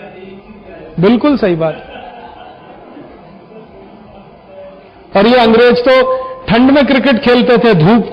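A middle-aged man speaks emphatically into a microphone.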